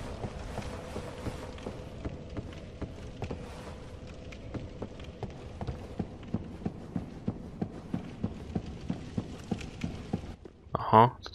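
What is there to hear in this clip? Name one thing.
Armoured footsteps thud and clank quickly on stone.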